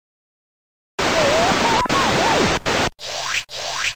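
Television static hisses loudly.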